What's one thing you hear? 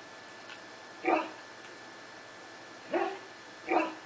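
A dog barks excitedly a few times.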